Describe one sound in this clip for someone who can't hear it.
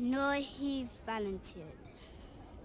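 A young girl speaks softly and nervously, close by.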